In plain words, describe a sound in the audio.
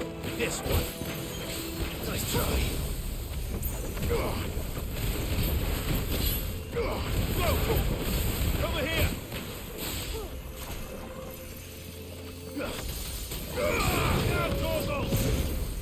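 Swords clash and strike in quick, repeated blows.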